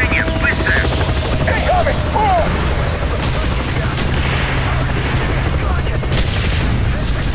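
A helicopter's rotors thump and its engine drones steadily.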